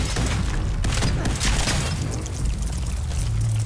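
A blast bursts with a loud crackling roar.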